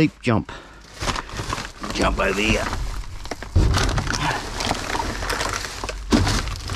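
Plastic bags and wrappers rustle and crinkle underfoot.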